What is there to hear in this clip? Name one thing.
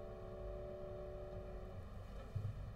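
A piano sounds a final chord.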